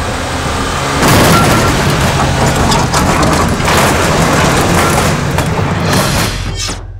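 Tyres screech as a car skids around a bend.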